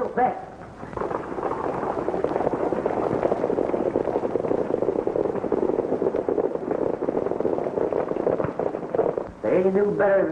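Several horses gallop past on a dirt track.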